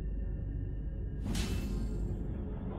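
A sharp hit sounds as a blade strikes.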